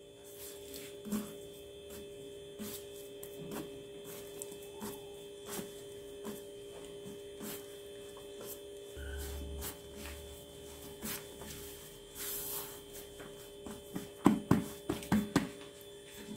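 Hands knead and slap soft dough on a counter with soft thumps.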